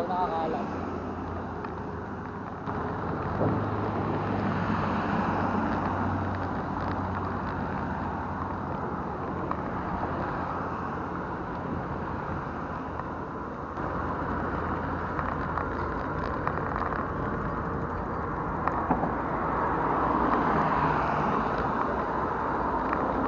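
Wind buffets loudly outdoors.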